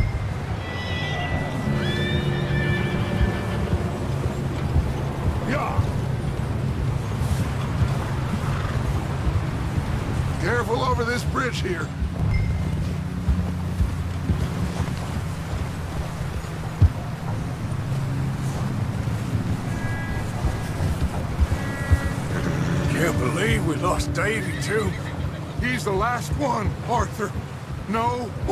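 Horses' hooves thud steadily on snow.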